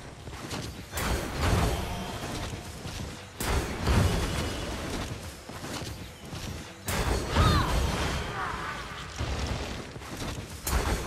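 Magic spells burst and crackle in loud, sudden blasts.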